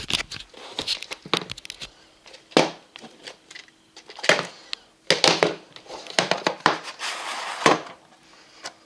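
Plastic wrapping crinkles and rustles in someone's hands.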